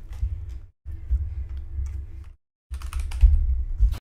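Keyboard keys clack under quick fingers.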